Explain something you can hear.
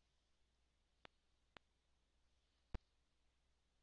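Short electronic beeps click now and then.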